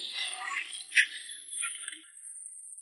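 Debris splashes into water.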